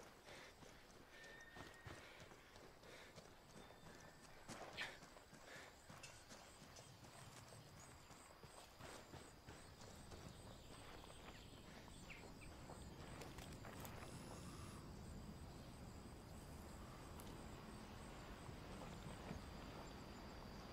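Footsteps crunch over grass and gravel.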